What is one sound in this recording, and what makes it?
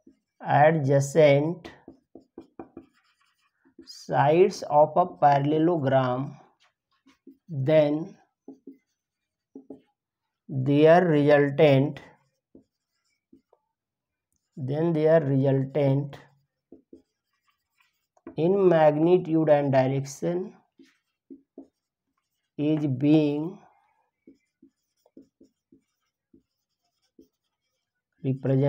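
A man speaks calmly in short phrases, close by, as if explaining.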